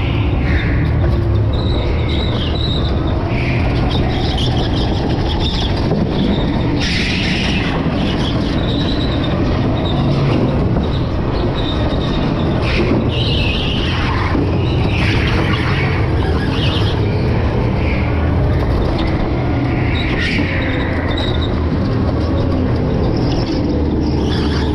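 A go-kart engine hums and buzzes steadily up close.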